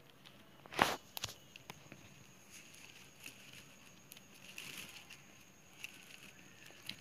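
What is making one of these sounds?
Plastic strips rustle and click as hands weave them together.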